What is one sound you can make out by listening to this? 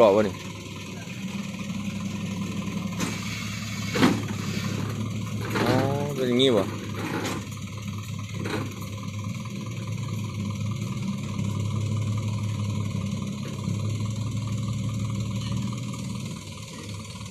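A tow truck's hydraulics hum steadily as its bed tilts up.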